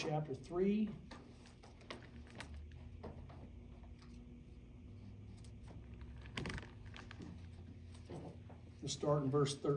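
Book pages rustle as a man turns them.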